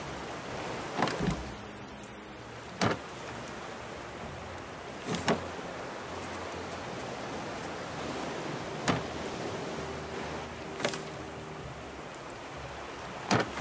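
Wooden items knock sharply onto boards now and then.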